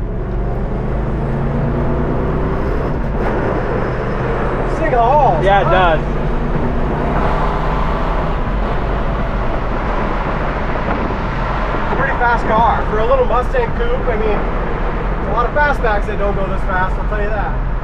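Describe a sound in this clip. Wind and road noise roar past the open car window.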